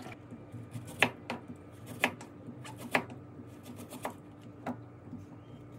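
A knife chops through a carrot onto a wooden cutting board in sharp, uneven knocks.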